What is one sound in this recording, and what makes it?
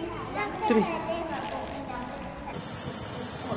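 A young girl speaks close by.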